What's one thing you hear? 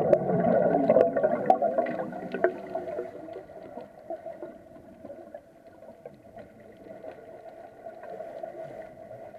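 Air bubbles gurgle and rush loudly underwater, then quieten.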